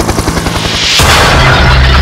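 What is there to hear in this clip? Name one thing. A helicopter crashes with a loud roaring impact.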